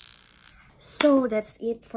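A young woman speaks close to a microphone with animation.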